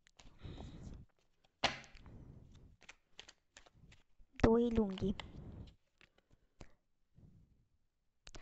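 Playing cards rustle and slide as a hand picks them up.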